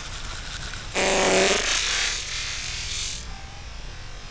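A young man spits out a long stream of water.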